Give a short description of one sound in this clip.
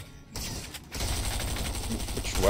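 Gunshots fire rapidly.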